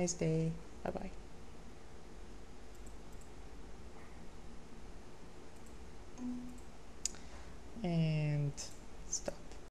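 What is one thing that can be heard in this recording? A computer mouse clicks a few times.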